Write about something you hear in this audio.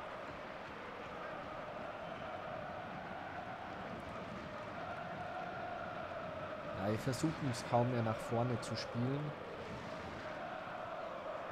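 A large crowd roars and murmurs steadily in a stadium.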